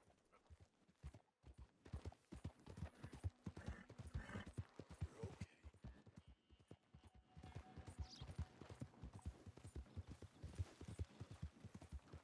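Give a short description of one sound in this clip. A horse's hooves thud steadily on a dirt trail.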